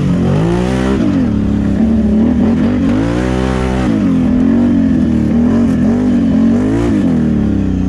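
Tyres rumble over a rough dirt track.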